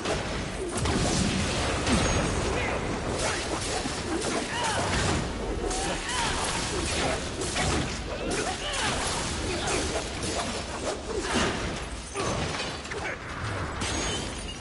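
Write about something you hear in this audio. Weapons clash and smash with loud impacts.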